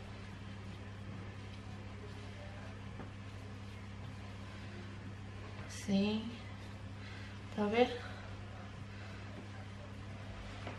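Hands knead soft dough with quiet thuds and squishes.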